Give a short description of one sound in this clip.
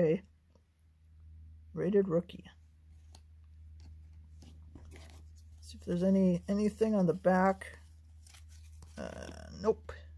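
Trading cards rustle and slide against each other as they are handled.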